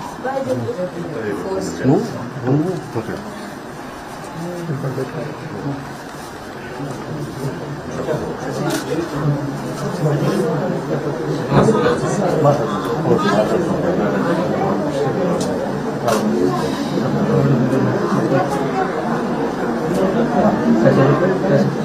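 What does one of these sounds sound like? Several women talk at once in a crowded room.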